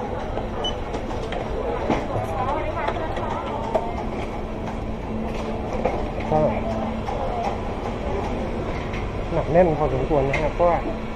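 Men and women chatter nearby in a crowded indoor space.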